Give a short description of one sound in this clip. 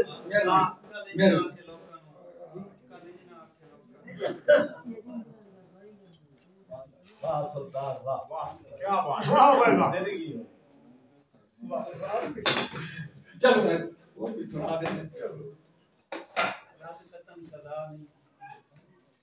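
An elderly man recites expressively into a microphone, heard through a loudspeaker.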